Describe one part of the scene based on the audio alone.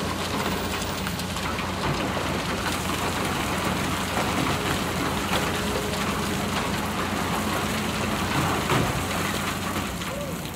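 Rocks and earth tumble from an excavator bucket into a truck bed.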